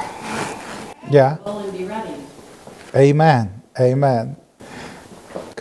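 A middle-aged man laughs.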